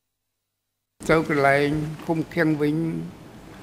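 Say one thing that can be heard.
An elderly man speaks slowly into a microphone.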